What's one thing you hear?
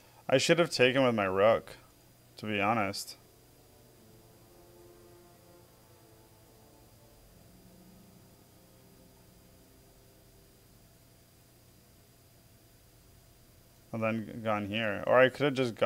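A man talks calmly into a close microphone, with pauses.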